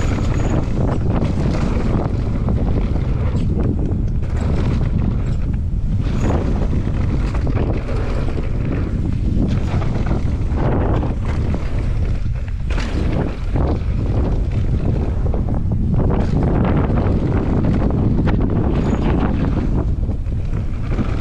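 Wind buffets loudly against the microphone.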